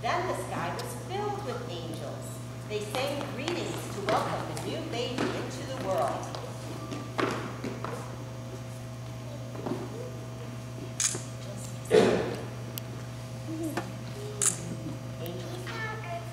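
Young children speak and chatter in a large echoing hall.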